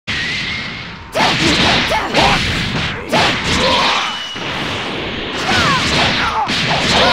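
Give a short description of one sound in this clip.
Energy blasts whoosh and crackle in a fast fight.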